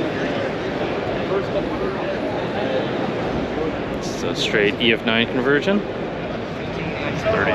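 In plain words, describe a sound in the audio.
A crowd chatters steadily in a large busy hall.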